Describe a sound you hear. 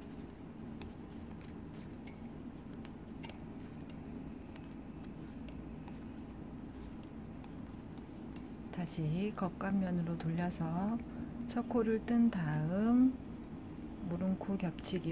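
Knitting needles click and tap softly.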